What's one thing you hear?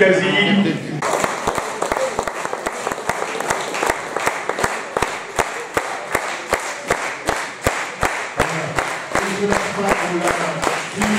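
A crowd applauds with steady rhythmic clapping.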